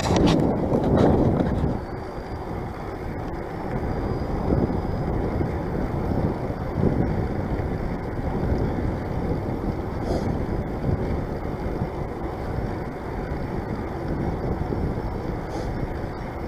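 Bicycle tyres hum and rumble on a paved path.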